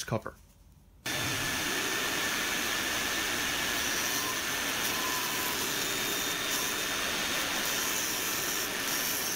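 A table saw runs with a steady whine as it cuts wood.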